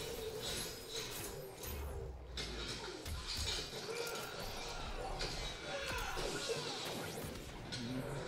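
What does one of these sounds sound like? Punches and energy blasts crash and whoosh in a fight.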